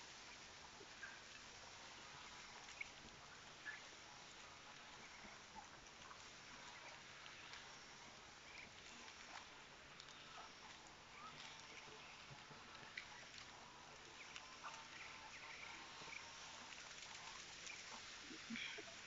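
Ducks quack softly here and there outdoors.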